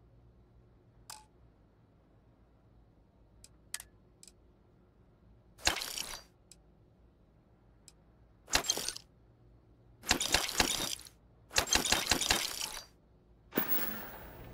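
Soft interface clicks and whooshes sound as menu items are chosen.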